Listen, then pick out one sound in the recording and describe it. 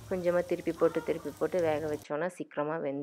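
Oil sizzles and bubbles in a frying pan.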